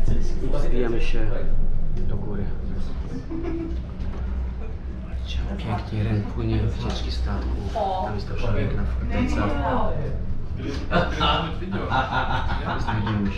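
A cable car hums steadily with a low rumble.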